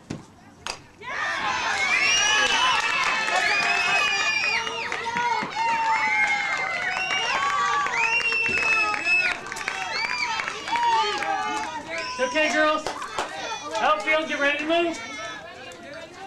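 A group of young girls chants and cheers loudly outdoors.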